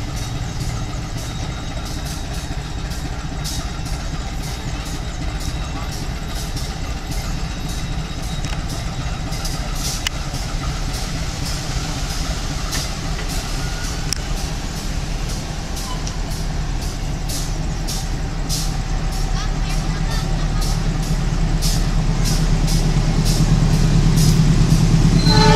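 A diesel locomotive rumbles as it approaches, growing steadily louder.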